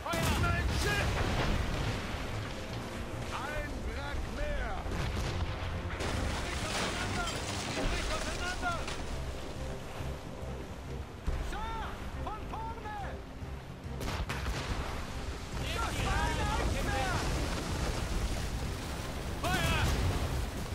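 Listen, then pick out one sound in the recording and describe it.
Waves rush and roar against a ship's hull.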